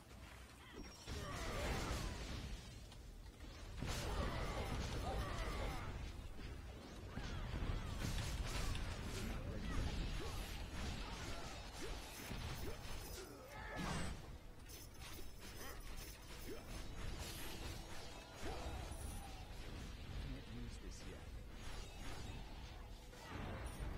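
Magic blasts and explosions crackle and boom in a game.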